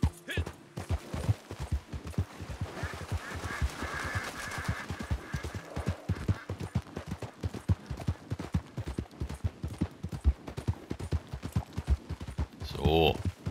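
A horse's hooves clop steadily on the ground.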